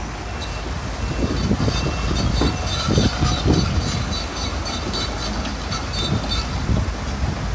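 Rocks clatter and tumble as they are dumped.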